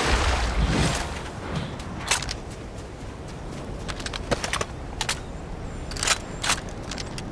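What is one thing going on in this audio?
Footsteps patter on rock and grass.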